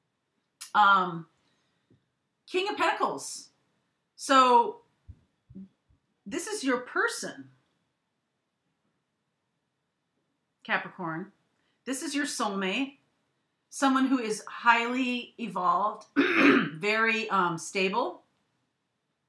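A middle-aged woman speaks calmly and close to the microphone, in short bursts with pauses.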